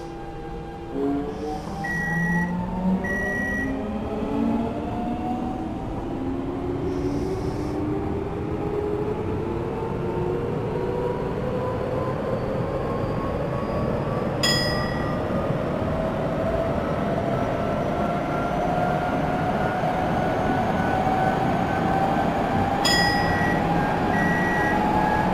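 An electric train's inverter motors whine, rising in pitch as the train accelerates.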